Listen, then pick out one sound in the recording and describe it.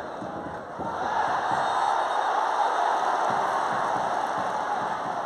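A large stadium crowd swells into a loud roar.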